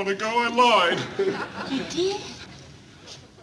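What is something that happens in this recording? A young woman speaks with surprise.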